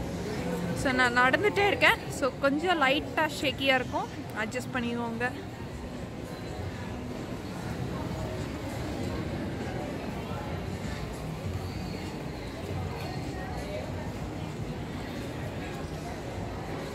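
A crowd murmurs and footsteps echo in a large hall.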